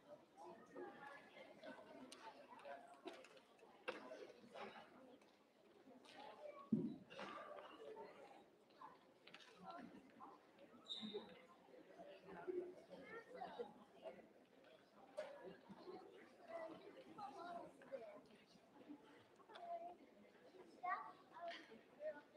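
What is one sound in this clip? Teenagers chat quietly in a hall.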